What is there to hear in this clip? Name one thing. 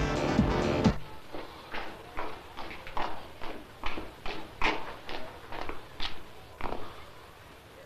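Footsteps of shoes tap across a hard floor.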